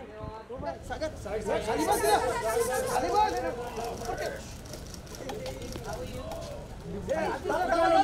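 Several men and women talk and call out excitedly close by.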